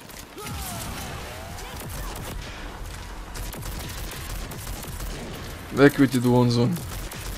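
A pistol fires repeated shots.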